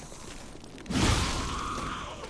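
A heavy blow strikes with a thud.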